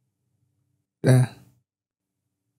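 A man says a few words into a close microphone.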